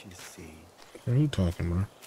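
A small fire crackles nearby.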